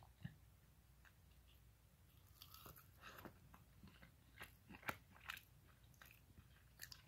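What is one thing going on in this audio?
A young man chews crunchy food close by.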